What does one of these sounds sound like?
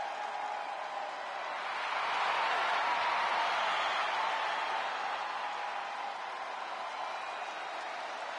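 A large crowd cheers loudly in a big arena, swelling and then easing.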